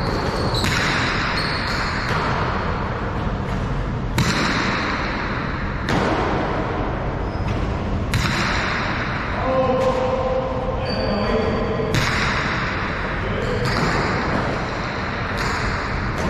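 A hard ball smacks against a wall and echoes through a large hall.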